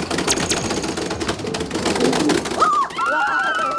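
Game buttons are tapped rapidly.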